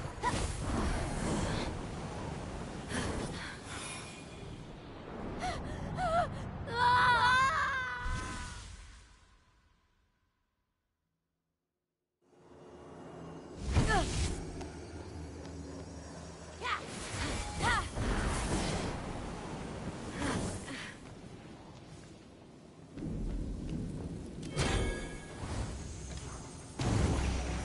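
Bright magical whooshes and shimmering chimes ring out.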